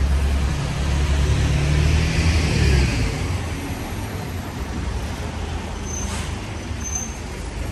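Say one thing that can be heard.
Traffic hums steadily along a street outdoors.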